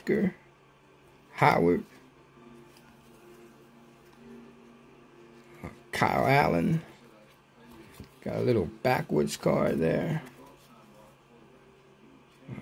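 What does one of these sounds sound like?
Trading cards slide and rustle softly against each other.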